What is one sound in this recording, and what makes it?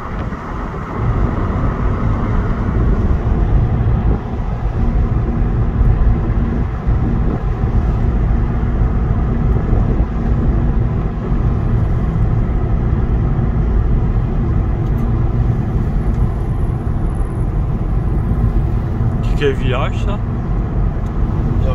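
A car engine hums steadily with low road rumble from inside the car.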